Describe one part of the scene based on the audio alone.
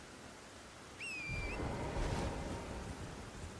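A magical shimmer rings out.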